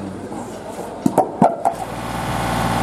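A winch clanks and rattles.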